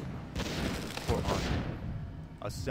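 A fiery blast booms.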